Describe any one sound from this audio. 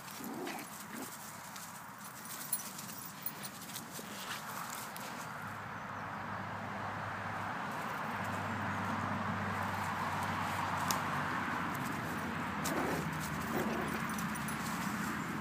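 Grass rustles as small dogs scuffle and tug.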